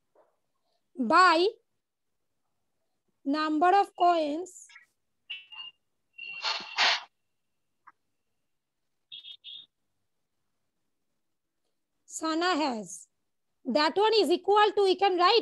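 A woman speaks in short phrases over an online call, as if teaching.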